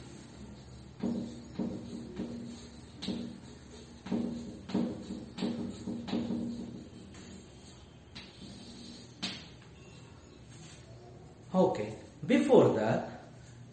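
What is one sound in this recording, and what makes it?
A middle-aged man speaks aloud, slowly and clearly.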